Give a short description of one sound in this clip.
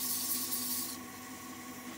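Sandpaper hisses against spinning wood.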